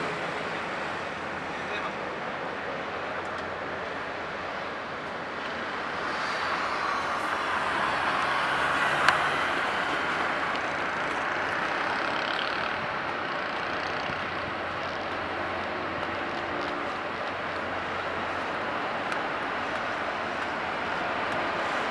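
Water rushes and churns in a ferry's wake, swelling as the ferry passes close by.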